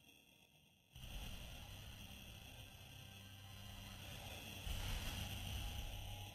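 A spaceship engine roars loudly.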